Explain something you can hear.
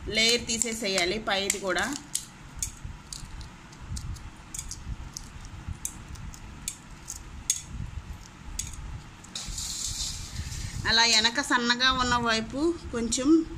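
Eggshell crackles and snaps as fingers peel it away.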